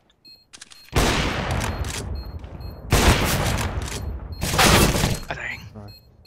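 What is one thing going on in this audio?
Loud rifle shots crack in quick bursts.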